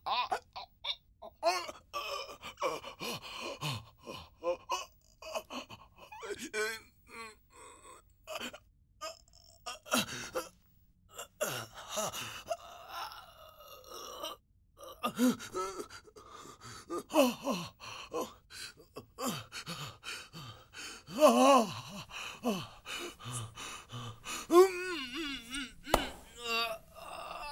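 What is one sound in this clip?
A man sobs and cries out in distress close by.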